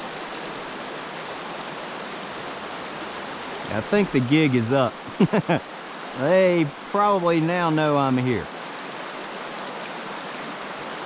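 A shallow stream flows and babbles steadily over rocks.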